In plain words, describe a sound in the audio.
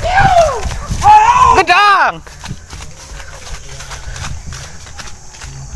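Footsteps hurry along a dirt path.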